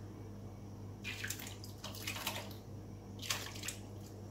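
Powder pours softly into a thick liquid.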